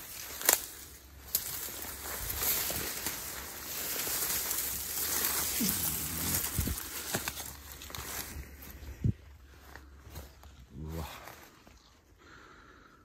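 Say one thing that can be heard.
Footsteps rustle through dense leaves and undergrowth.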